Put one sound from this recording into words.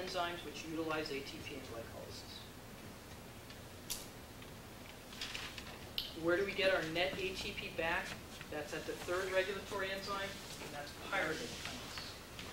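A man speaks calmly to a room.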